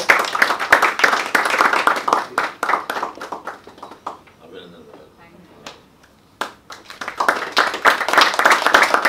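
A group of people applaud.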